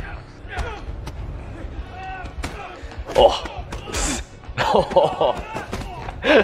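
Blows and thuds land as men scuffle.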